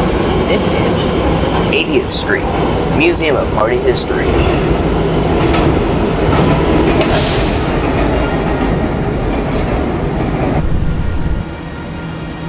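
A subway train rumbles loudly along the tracks and then goes quiet as it stops.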